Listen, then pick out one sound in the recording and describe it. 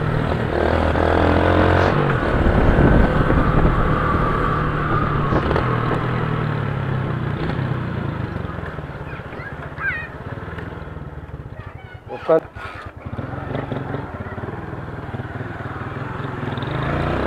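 A motorcycle engine hums and revs while riding.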